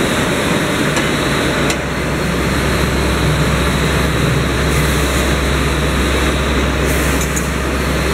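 A roll forming machine's motor hums.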